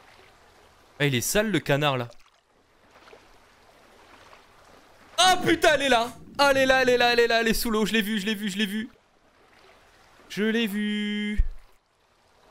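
A young man speaks loudly and animatedly into a close microphone.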